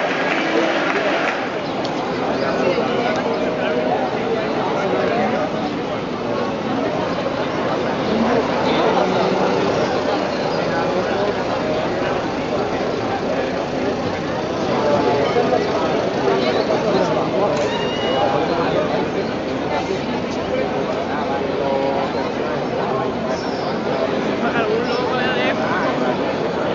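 A large crowd chatters all around, outdoors.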